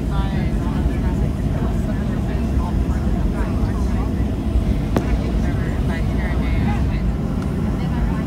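A jet engine rumbles and roars steadily, heard from inside an aircraft cabin.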